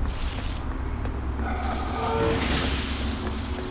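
A monster hisses and growls close by.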